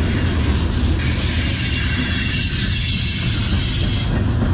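Train wheels squeal and hiss on the track.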